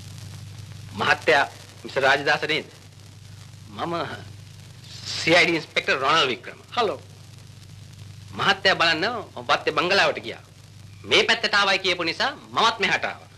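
A man talks with animation nearby, in short bursts.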